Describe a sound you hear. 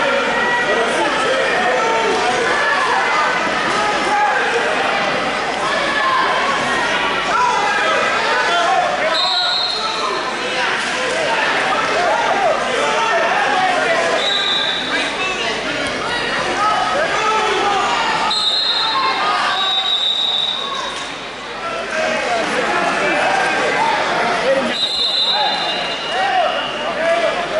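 A crowd of spectators and coaches chatters and shouts in a large echoing hall.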